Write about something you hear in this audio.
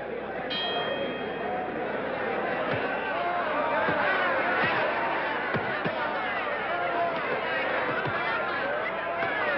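A large crowd shouts and cheers loudly throughout.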